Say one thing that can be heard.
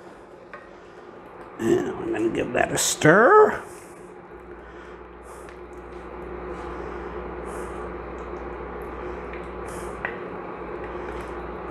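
A wooden spoon stirs and scrapes in a pot of soup.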